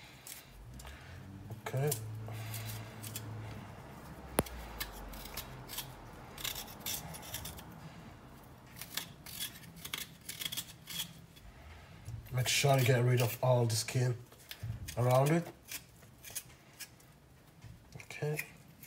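A small knife scrapes and peels the skin off a ginger root in short strokes.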